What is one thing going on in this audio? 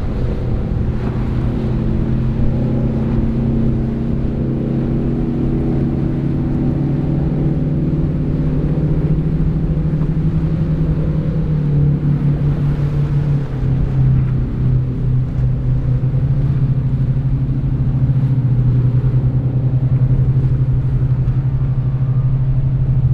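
A powerboat's engine drones loudly and steadily as the boat speeds past.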